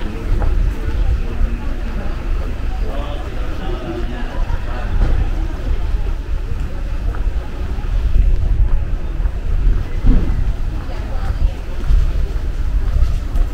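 Footsteps tap on a cobbled street.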